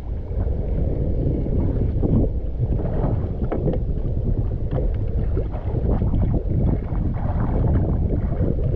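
Water laps against the hull of a small outrigger boat.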